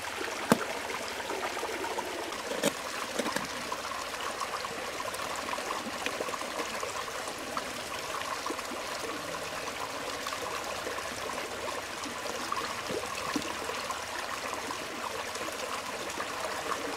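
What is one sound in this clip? A stream trickles and flows steadily.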